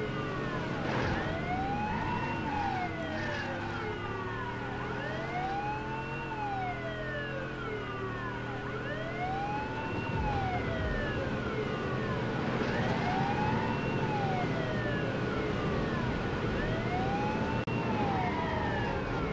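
A police siren wails in a rising and falling pattern.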